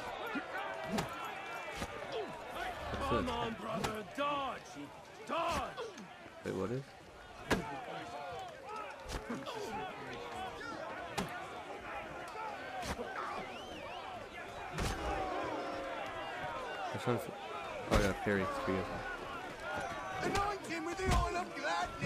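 Fists land heavy punches with dull thuds.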